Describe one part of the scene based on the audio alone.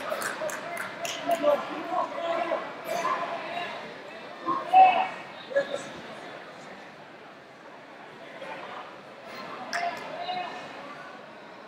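A crowd of men and women chatter and call out in a large echoing hall.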